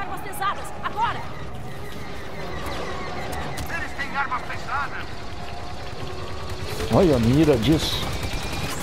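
Blaster guns fire in quick bursts of zapping shots.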